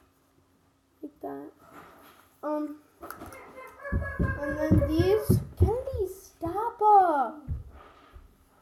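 A boy talks close by, with animation.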